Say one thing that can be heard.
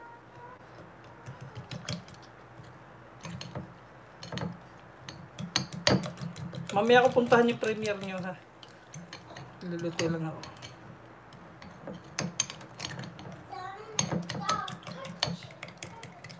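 A fork clinks against a bowl while whisking.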